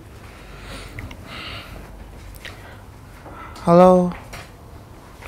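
A young woman speaks briefly into a phone.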